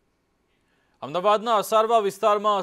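A man speaks calmly and clearly into a microphone, reading out.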